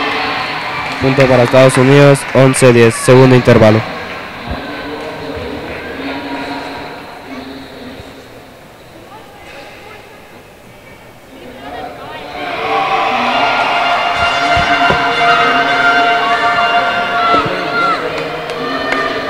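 Men and women chatter at a distance in a large echoing hall.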